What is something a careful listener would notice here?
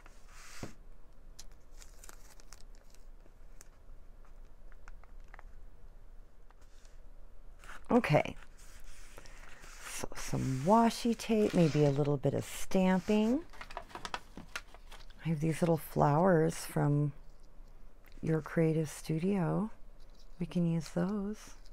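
Paper rustles and scrapes softly as hands press and smooth it on a table.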